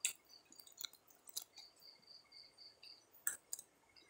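A young man chews food close by with wet smacking sounds.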